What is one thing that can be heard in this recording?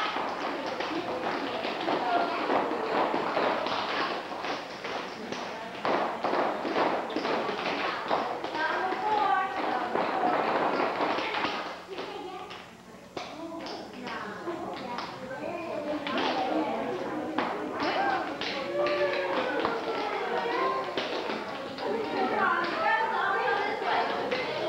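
Children's voices chatter and call out.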